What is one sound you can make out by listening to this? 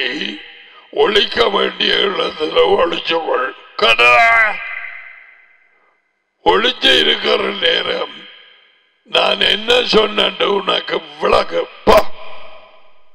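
A middle-aged man speaks emphatically into a headset microphone, close up.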